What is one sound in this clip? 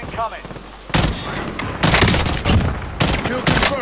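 A rifle fires in quick bursts close by.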